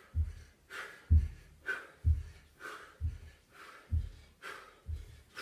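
Feet thump rhythmically on a floor.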